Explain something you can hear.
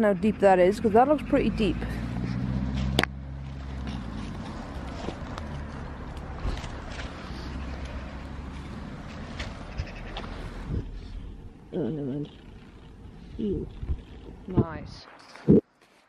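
Footsteps crunch through dry grass and wet ground.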